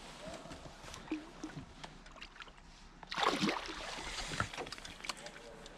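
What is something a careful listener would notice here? Water splashes against a boat's side.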